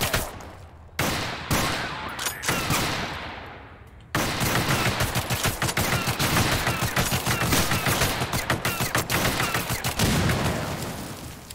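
A machine gun fires in loud, rapid bursts.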